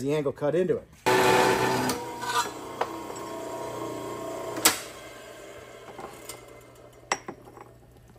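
A metal-cutting saw whirs loudly, then winds down.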